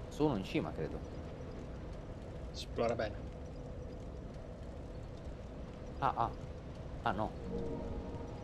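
A man speaks in short bursts close to a microphone.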